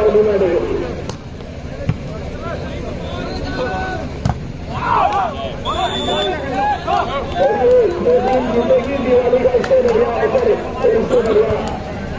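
Spectators shout and cheer loudly outdoors.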